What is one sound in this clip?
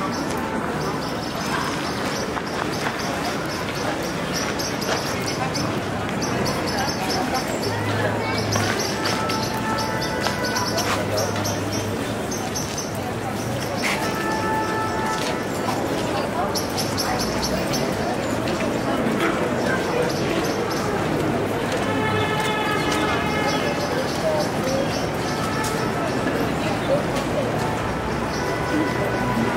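A crowd of people chatters outdoors on a street.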